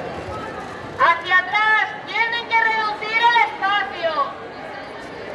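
A woman speaks loudly and with animation close by.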